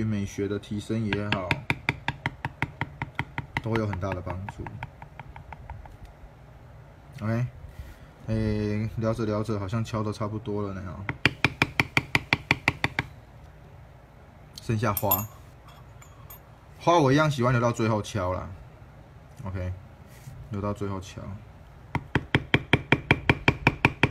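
A mallet taps rapidly on a metal stamping tool against leather.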